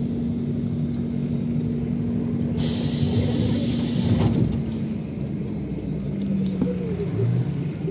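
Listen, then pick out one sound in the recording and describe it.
A car drives past close by with a rush of tyres.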